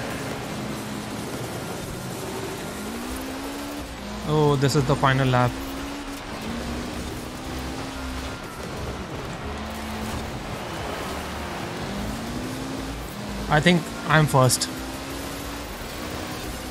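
A car engine drones and revs as gears shift.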